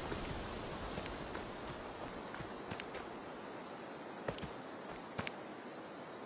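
Light footsteps rustle through grass.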